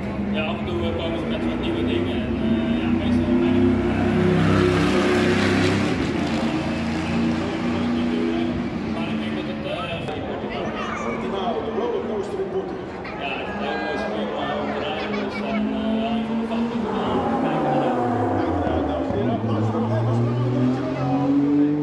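A race car engine roars and revs as the car drifts past.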